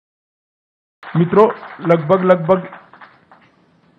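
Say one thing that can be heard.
An elderly man speaks firmly into a microphone, his voice amplified through a loudspeaker.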